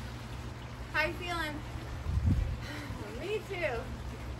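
An older woman speaks briefly and calmly, close by.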